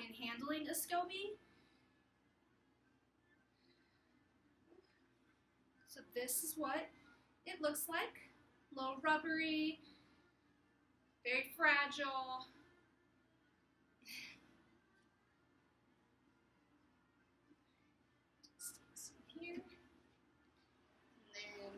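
A young woman talks calmly into a nearby microphone, with pauses.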